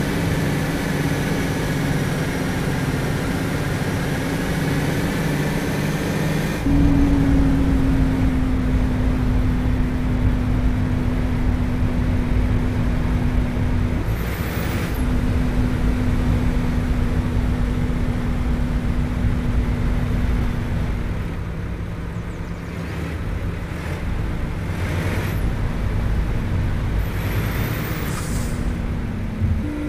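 A truck engine rumbles steadily, its pitch dropping as the truck slows.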